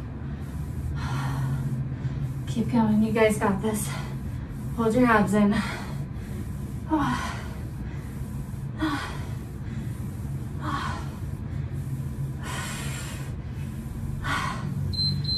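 A woman breathes out hard in short bursts.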